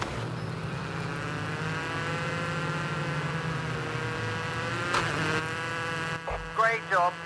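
A rally car engine drones steadily at high revs.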